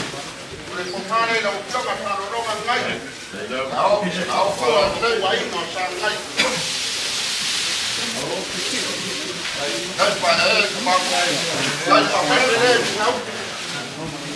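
Adult men and women talk and call out with animation nearby.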